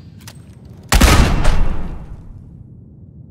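A gun fires once with a loud blast that rings out briefly.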